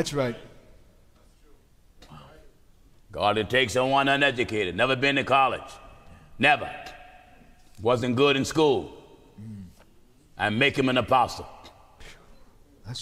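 A middle-aged man speaks slowly and deliberately into a microphone, with pauses between phrases.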